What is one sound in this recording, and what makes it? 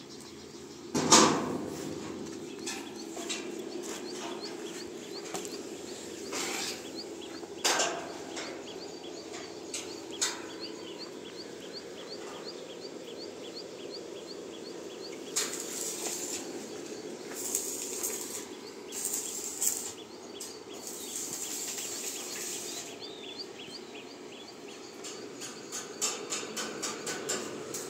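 Metal clanks and knocks close by.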